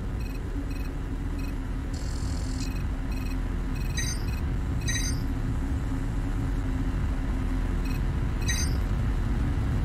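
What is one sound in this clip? Menu beeps chime as a cursor moves.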